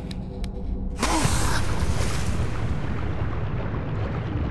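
Water splashes loudly, then bubbles and churns.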